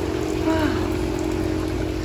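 Water trickles down a rock wall.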